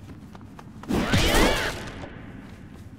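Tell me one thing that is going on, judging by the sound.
A bright burst of magic whooshes and chimes.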